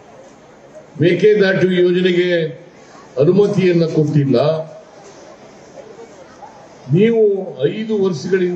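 An elderly man speaks forcefully into a microphone in short outbursts, outdoors.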